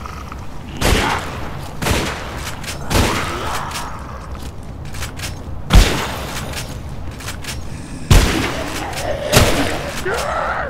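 A shotgun fires loud booming blasts again and again.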